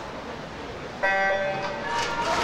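An electronic start signal beeps once.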